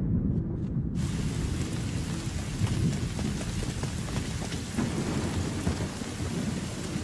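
Heavy rain pours down outdoors in a strong wind.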